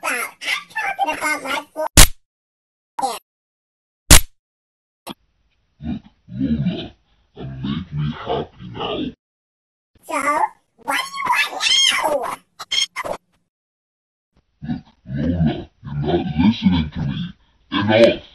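A man speaks with animation, close to the microphone.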